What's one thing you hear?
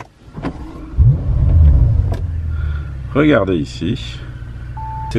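A small electric motor hums steadily as a dashboard panel turns.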